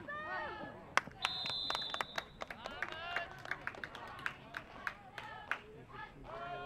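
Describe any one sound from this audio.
Football players' pads and helmets clack together.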